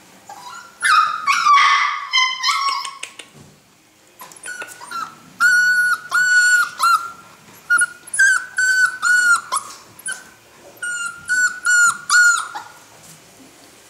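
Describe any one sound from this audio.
A puppy yelps and howls close by in short, high bursts.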